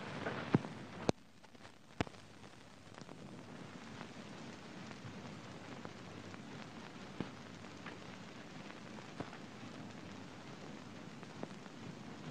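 A man's footsteps tap slowly on a hard floor.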